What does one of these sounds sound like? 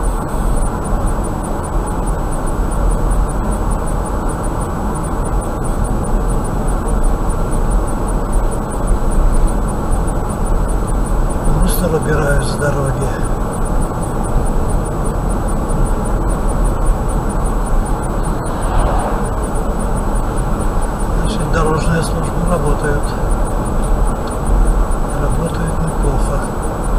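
A car drives steadily along a highway, with a low rumble of tyres and engine.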